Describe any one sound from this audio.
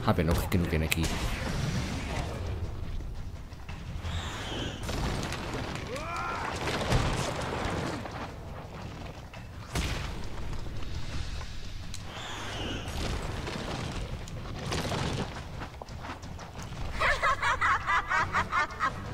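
A huge monstrous creature growls and roars menacingly.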